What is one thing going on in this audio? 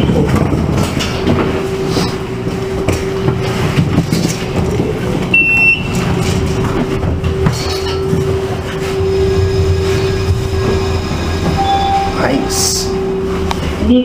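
An elevator motor hums steadily while the car moves.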